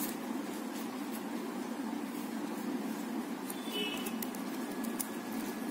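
Plastic cords rustle and click softly as they are woven by hand.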